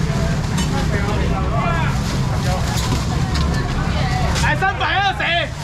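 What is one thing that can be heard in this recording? A crowd of people chatters loudly all around.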